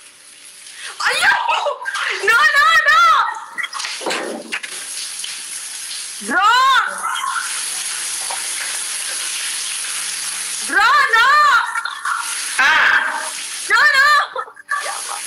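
A young woman shrieks with laughter over an online call.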